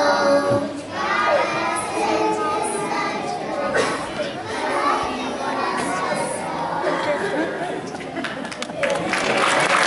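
A young girl speaks shyly into a microphone.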